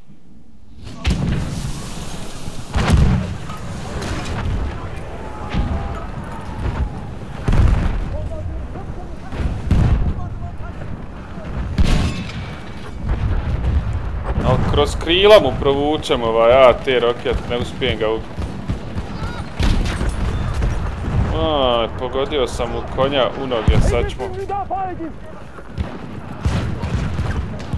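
Explosions boom heavily nearby.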